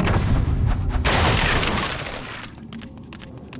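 A bright magical shimmer rings out as a glowing gem is collected.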